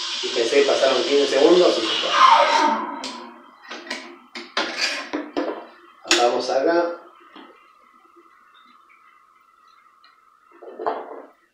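An espresso machine hisses and hums.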